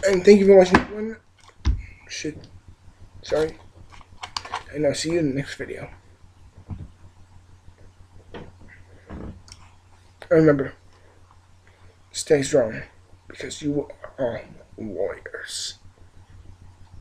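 A young man talks casually and close to a microphone.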